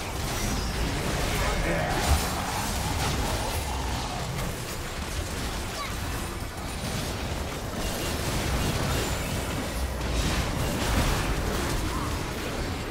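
Magic blasts and impacts crackle in a busy battle.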